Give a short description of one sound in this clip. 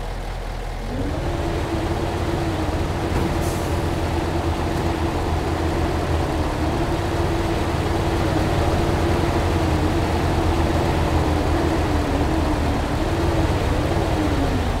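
A hydraulic crane whines steadily as its arm moves.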